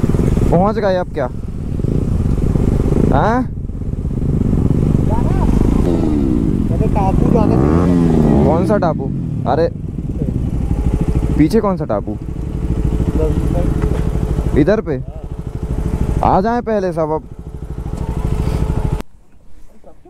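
Motorcycle engines rumble close by.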